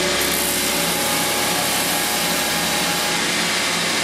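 A belt grinder grinds metal with a harsh hiss.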